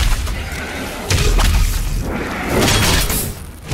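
Flesh bursts with a wet splatter.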